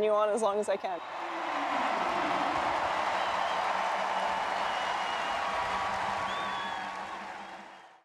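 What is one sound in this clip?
A large crowd cheers and applauds in a big echoing arena.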